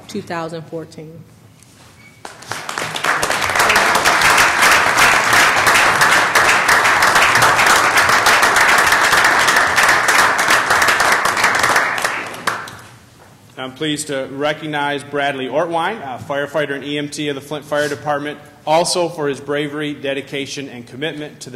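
A man speaks through a microphone in a large room.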